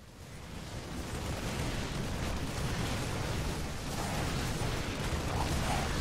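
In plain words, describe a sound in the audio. Gunfire and explosions rumble in a busy battle.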